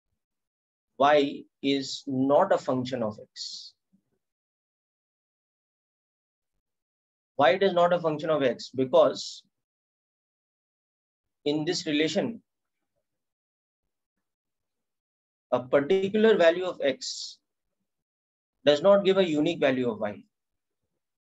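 A man speaks calmly into a close microphone, explaining in short bursts with pauses.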